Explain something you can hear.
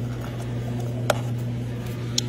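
A plastic lid snaps onto a paper cup.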